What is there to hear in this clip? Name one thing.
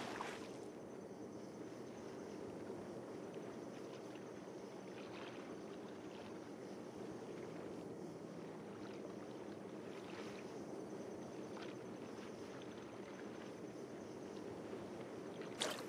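Water gently laps and splashes.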